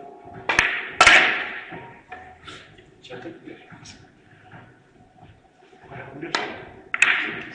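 Billiard balls click against each other and against the cushions.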